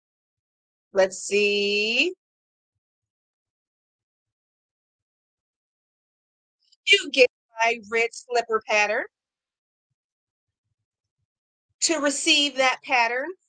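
A woman talks with animation into a microphone.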